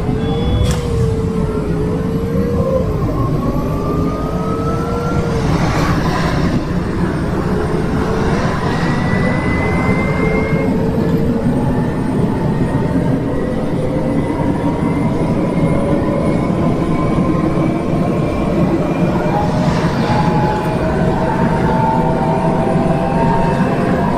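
A bus engine hums steadily while driving, its pitch slowly rising and falling.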